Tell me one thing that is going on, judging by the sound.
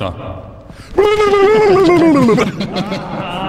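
A man makes a loud drawn-out exclaiming sound into a microphone.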